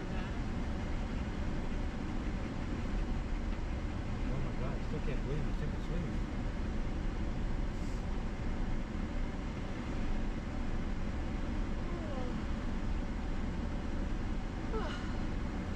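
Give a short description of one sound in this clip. Tyres rumble over a gravel road.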